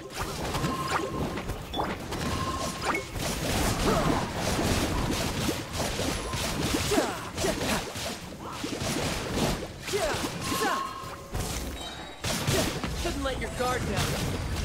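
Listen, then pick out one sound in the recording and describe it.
Game battle effects crackle and burst rapidly.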